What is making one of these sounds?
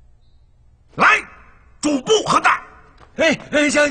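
A man calls out loudly in a commanding voice.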